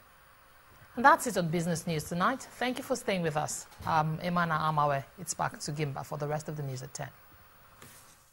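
A woman reads out the news calmly into a microphone.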